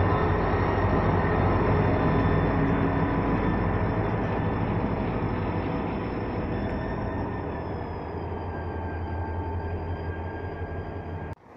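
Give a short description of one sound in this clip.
Train wheels clatter and squeal on the rails as the train rolls past.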